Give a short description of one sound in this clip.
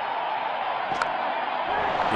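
A bat strikes a ball with a sharp crack.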